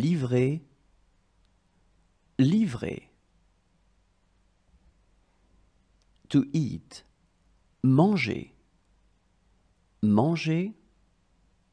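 A woman speaks single words clearly and slowly, with pauses between them.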